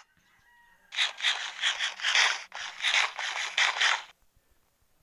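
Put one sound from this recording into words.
Crunchy chewing bites repeat quickly.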